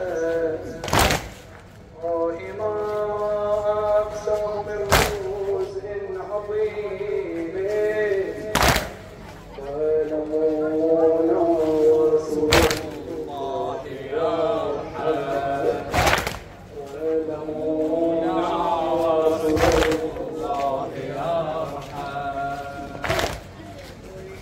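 Men strike their chests in unison with heavy, regular thumps.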